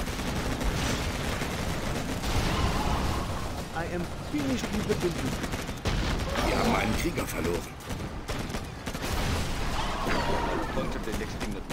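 Explosions boom and rumble repeatedly.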